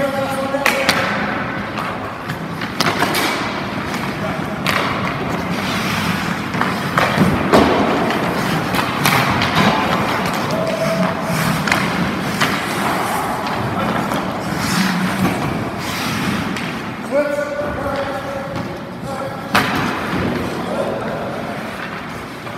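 Hockey skates scrape and carve on ice in an echoing rink.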